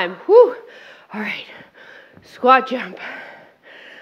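Dumbbells thud down onto a mat.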